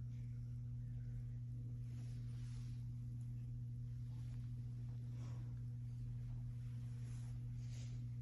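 Cloth rustles softly as a flag is folded.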